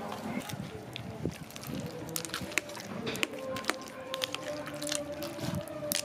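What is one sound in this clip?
A spoon scrapes and clinks against ice in a bowl.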